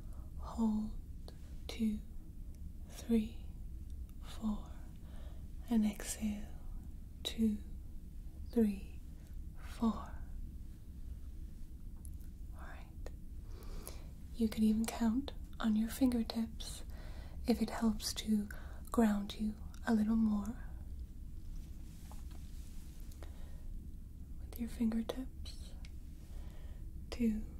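A young woman speaks softly and slowly, close to a microphone.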